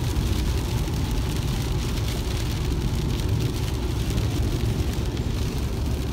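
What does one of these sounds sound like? Heavy rain drums steadily on a car's windshield.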